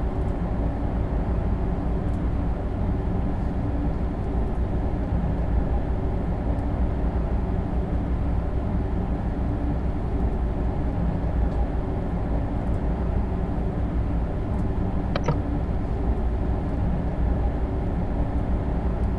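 A train rumbles steadily along the rails at speed.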